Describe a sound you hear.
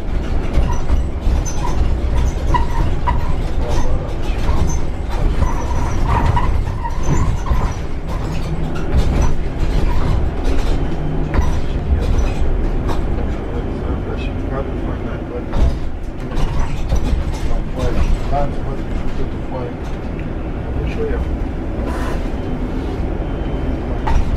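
Loose parts rattle and clatter inside the moving bus.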